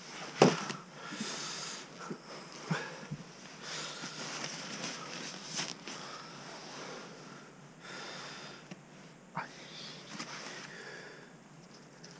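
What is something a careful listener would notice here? A plastic bag crinkles and rustles close by.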